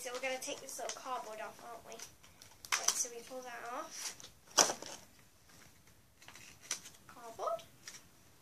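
Plastic packaging crinkles and rustles in a girl's hands.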